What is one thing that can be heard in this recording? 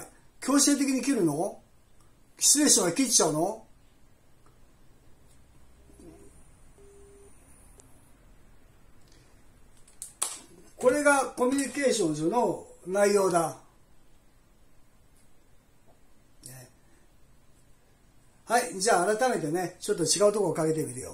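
A middle-aged man talks calmly into a phone close by.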